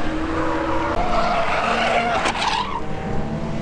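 A car skids and spins off the track onto the grass.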